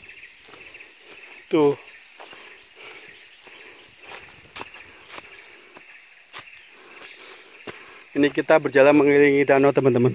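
Footsteps crunch on dry leaves.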